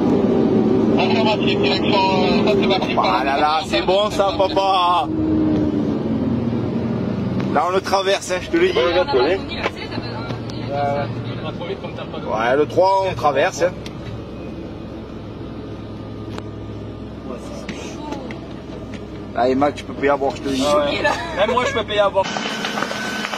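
Men talk and shout urgently close by.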